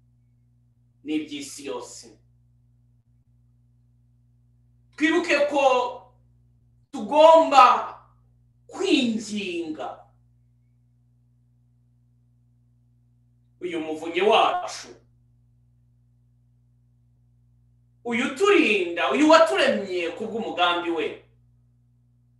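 A middle-aged man sings short phrases close by, pausing between them.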